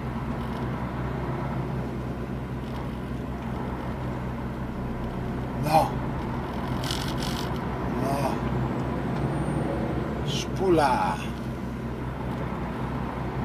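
A vehicle engine hums steadily from inside the cab.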